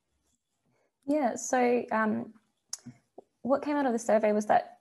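An elderly woman speaks calmly through an online call microphone.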